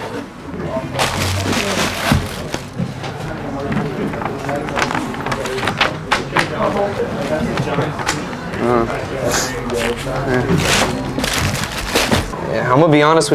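Tissue paper rustles and crinkles as it is pulled from a box.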